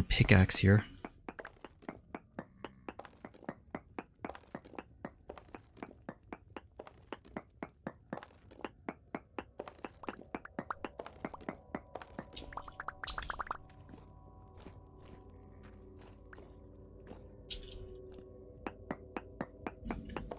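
A pickaxe chips at stone with quick, steady taps.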